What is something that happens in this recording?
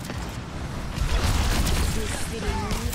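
Loud explosions boom and roar.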